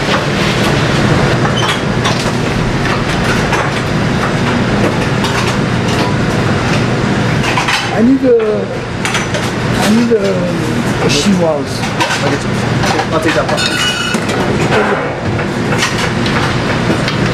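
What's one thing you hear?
A metal spoon scrapes and knocks against a pot.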